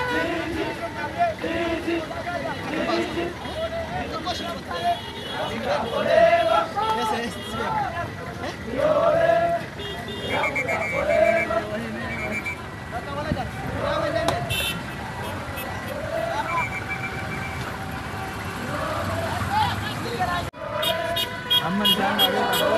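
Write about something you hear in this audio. A group of young men chant and sing together outdoors.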